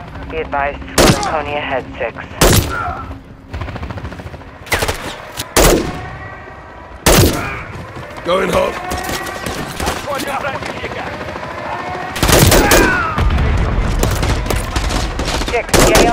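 Rifle shots crack in short bursts.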